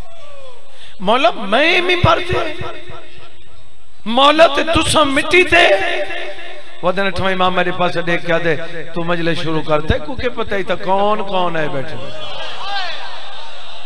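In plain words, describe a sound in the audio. A man recites loudly and with emotion into a microphone, heard through loudspeakers in an echoing hall.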